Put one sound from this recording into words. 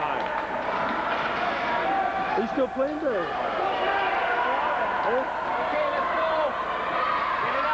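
Young voices shout and call out in a large echoing hall.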